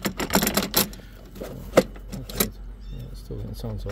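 A plastic wheel clatters as it is pulled off a metal axle.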